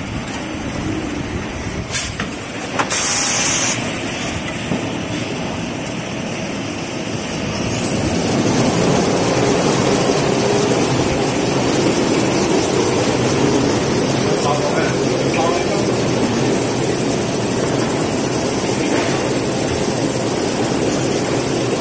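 Industrial machinery hums and whirs steadily in a large echoing hall.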